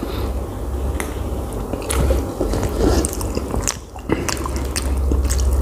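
A man chews and slurps food noisily close by.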